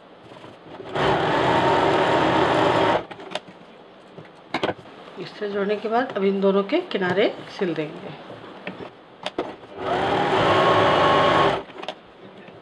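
A sewing machine whirs in short, fast bursts.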